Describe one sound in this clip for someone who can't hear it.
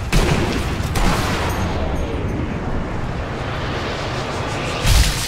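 A bullet whooshes slowly through the air with a low rumble.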